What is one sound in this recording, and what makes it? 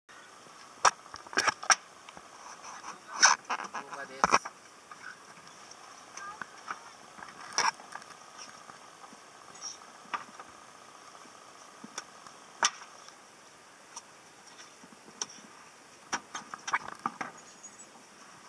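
Diving gear clanks and knocks against a boat.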